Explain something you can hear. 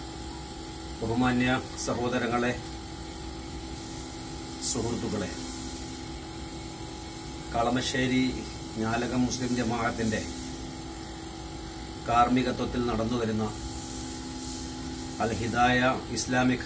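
An elderly man speaks calmly in short phrases close by, with pauses between them.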